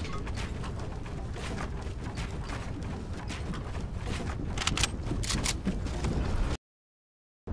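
Footsteps clatter quickly on wooden boards.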